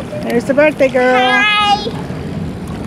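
A young girl shouts excitedly nearby, outdoors.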